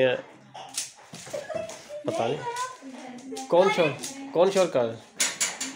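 A puzzle cube clicks as its layers are twisted quickly.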